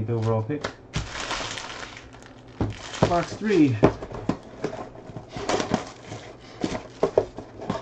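Plastic wrapping crinkles as a pack is torn open.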